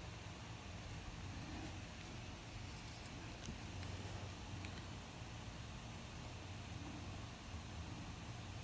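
A marker squeaks softly as it draws on paper.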